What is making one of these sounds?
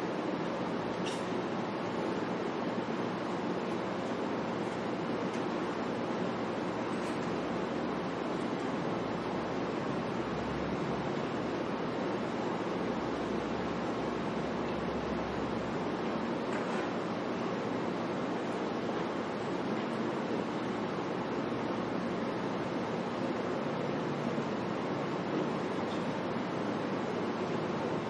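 An air conditioner hums steadily.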